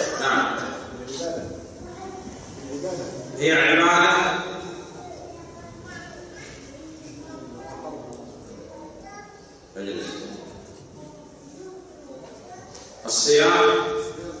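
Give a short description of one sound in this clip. A man speaks with animation into a microphone in an echoing room.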